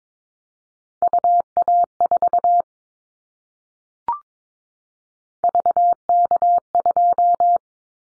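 A telegraph key taps out Morse code in short and long steady beeps.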